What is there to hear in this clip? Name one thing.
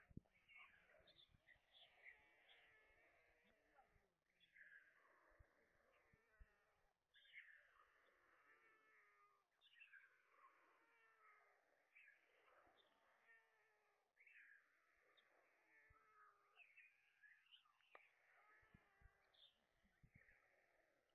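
Stork chicks beg with shrill, wheezy squeaks and chirps.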